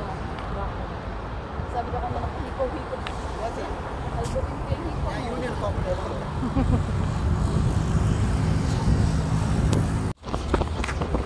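Traffic rumbles past on a road outdoors.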